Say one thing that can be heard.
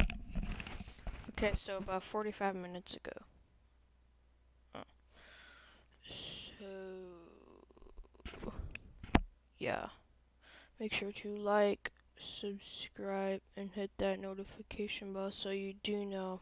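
A young person talks close to a headset microphone.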